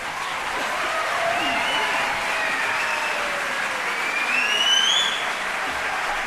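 Audience members cheer and whistle.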